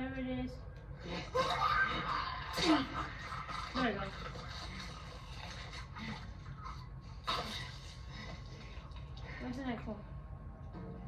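Gunfire bursts from a television loudspeaker.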